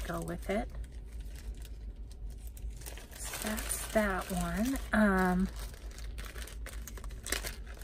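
Plastic bags crinkle and rustle as they are handled.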